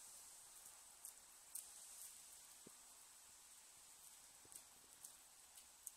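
Footsteps crunch on wet gravel, coming closer.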